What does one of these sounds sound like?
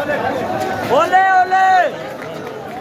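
A man shouts loudly in a crowd.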